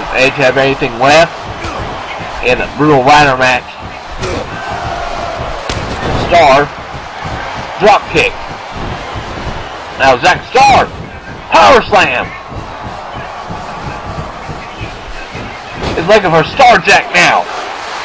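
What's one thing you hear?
A crowd cheers and roars steadily throughout.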